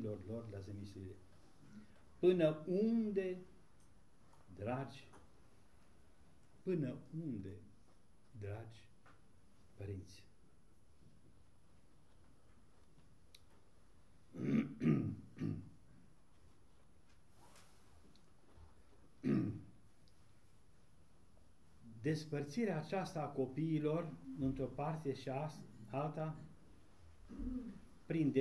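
An elderly man reads aloud slowly and solemnly, with long pauses.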